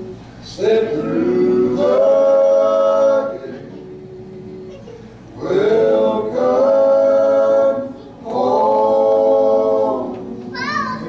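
Men sing together in harmony through a microphone, holding long notes.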